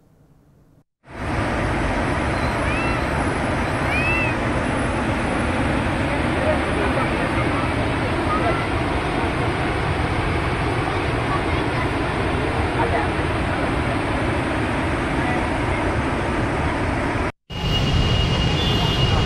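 Water roars as it pours through a dam's floodgates.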